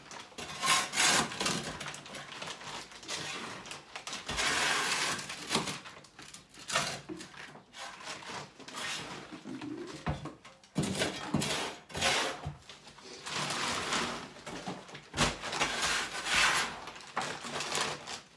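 A worker scrapes and knocks loose plaster and brick debris.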